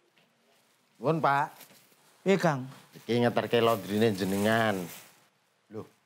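A man speaks politely, close by.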